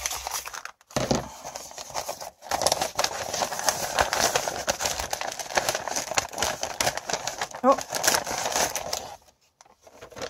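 Stiff paper crinkles and rustles as hands unfold it.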